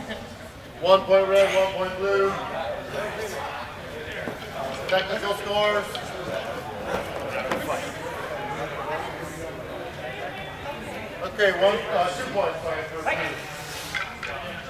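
A man calls out in a large echoing hall.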